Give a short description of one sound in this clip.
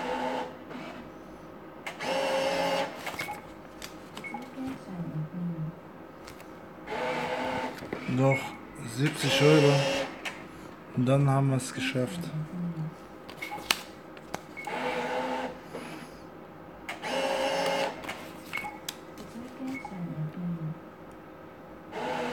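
A gaming machine plays short electronic jingles.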